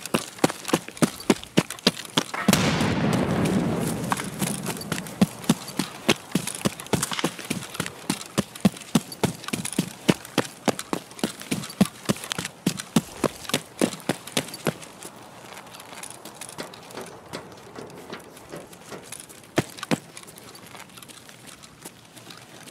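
Footsteps crunch steadily on gravel and hard ground.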